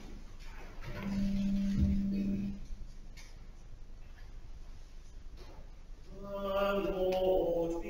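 A choir of men and women sings a short phrase in a large echoing hall.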